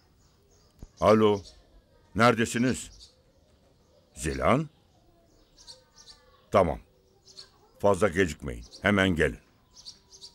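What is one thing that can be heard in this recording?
An elderly man speaks quietly into a phone.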